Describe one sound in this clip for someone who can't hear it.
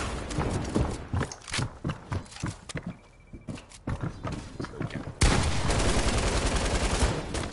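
Footsteps thud quickly on wood and grass.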